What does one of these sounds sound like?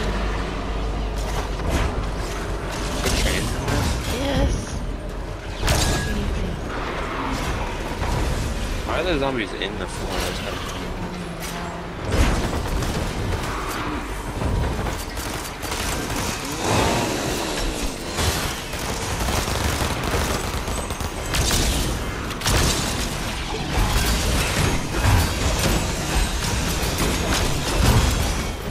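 Video game weapons fire and strike in quick bursts.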